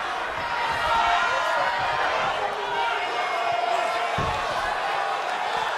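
A large crowd cheers and chants loudly in a big arena.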